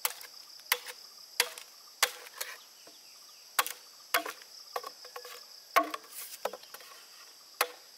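A machete chops into bamboo with sharp, repeated knocks.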